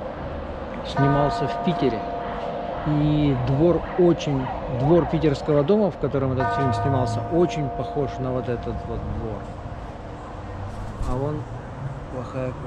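A middle-aged man talks close by, calmly and with animation.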